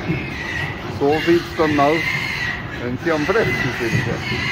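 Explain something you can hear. A pig squeals loudly in sharp bursts.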